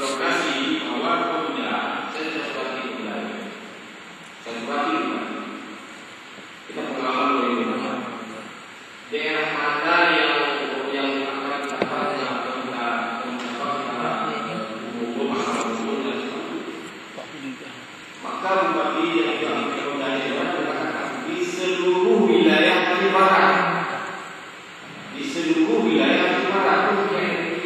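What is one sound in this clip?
A man speaks with animation into a microphone, heard through a loudspeaker in an echoing room.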